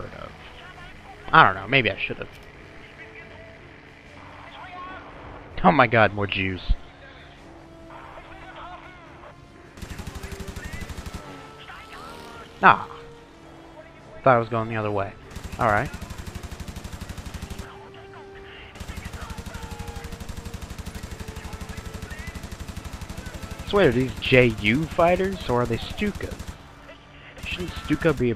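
A piston-engined fighter plane's engine drones in a video game.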